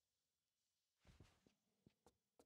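A body lands with a heavy thud.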